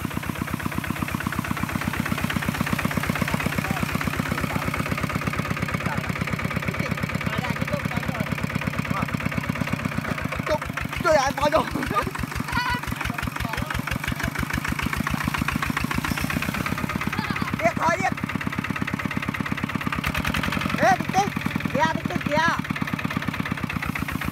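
A small diesel engine chugs steadily and loudly nearby.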